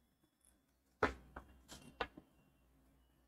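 A plastic ruler knocks and rattles on paper.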